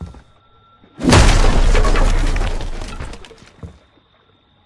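A wooden door bursts open with a loud crash.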